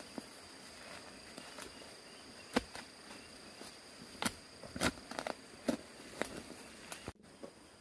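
Loose earth scrapes and crumbles as it is shovelled aside.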